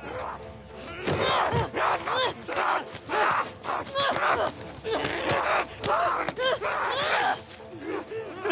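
Blows land in a close scuffle.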